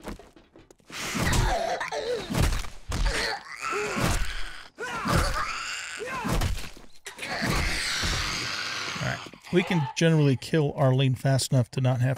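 An elderly man talks with animation close to a microphone.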